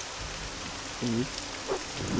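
A winged creature gives a short, harsh screech.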